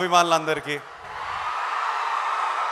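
A large crowd cheers and claps.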